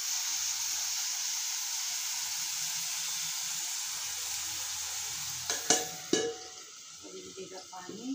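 A cloth rubs and wipes across a hard surface.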